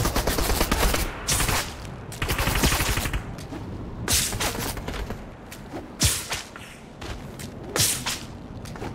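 Footsteps crunch on snow in a video game.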